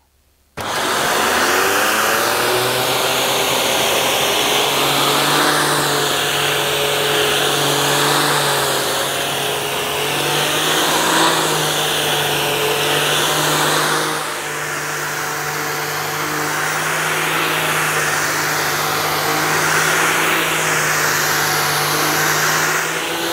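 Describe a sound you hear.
A vacuum cleaner motor whirs loudly and steadily.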